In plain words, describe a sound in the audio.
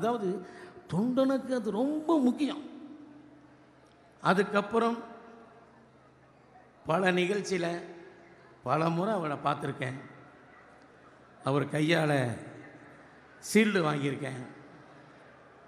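A man makes a speech through a loudspeaker in bursts, with strong echo in a large hall.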